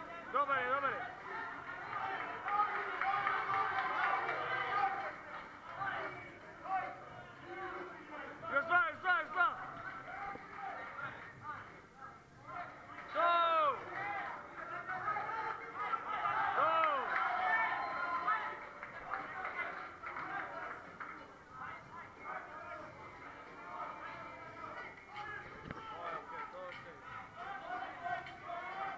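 A crowd of men and women cheers and shouts encouragement in a large echoing hall.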